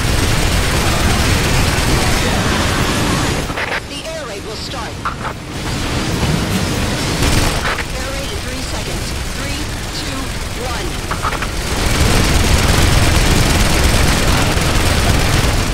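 Gatling guns fire rapidly.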